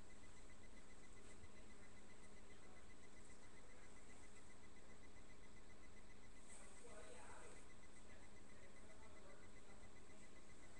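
Fabric rustles as it is handled close by.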